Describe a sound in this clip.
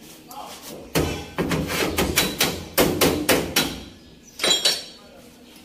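A hammer bangs repeatedly on sheet metal.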